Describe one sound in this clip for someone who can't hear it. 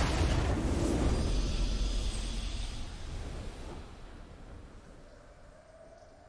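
A triumphant game fanfare swells and fades.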